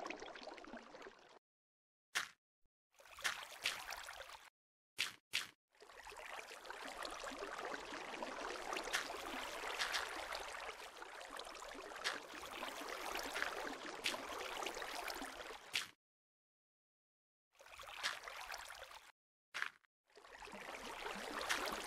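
Water splashes and trickles as it pours out of a bucket.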